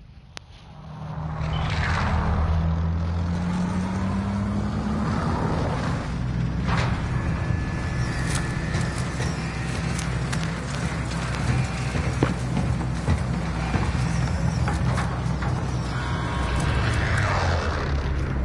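Jet engines of a large plane roar loudly overhead.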